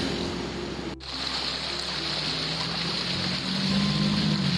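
Water trickles and flows in a shallow stream.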